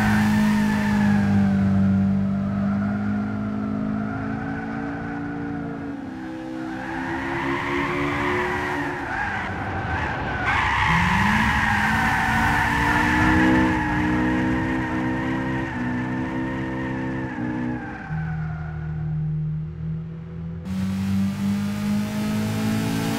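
A car engine revs hard, rising and falling in pitch as the car speeds along.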